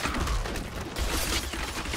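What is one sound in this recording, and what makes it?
A stream of fire roars and hisses.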